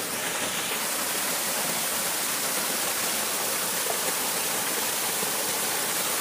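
Water pours from a bucket onto a sluice.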